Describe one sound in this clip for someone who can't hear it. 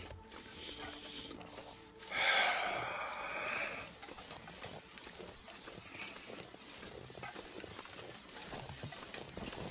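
Wind blows steadily through falling snow.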